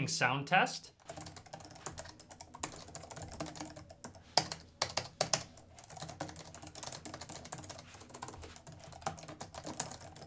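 Keys on a keyboard clatter softly with quick, steady typing.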